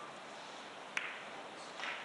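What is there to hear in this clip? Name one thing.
A cue strikes a billiard ball with a sharp knock.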